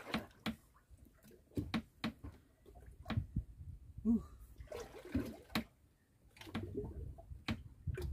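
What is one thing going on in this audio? A man strikes a fish with repeated heavy thumps of a club.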